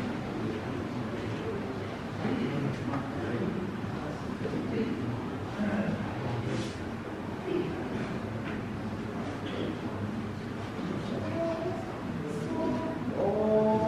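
A large choir of men and women sings together in a hall with some echo.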